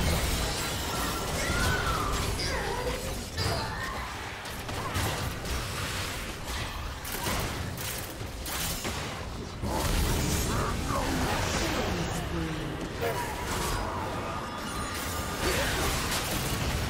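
Weapons clash and hit repeatedly.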